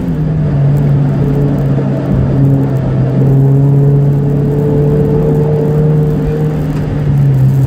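A racing car's engine drones at a steady pitch, heard from inside the cabin.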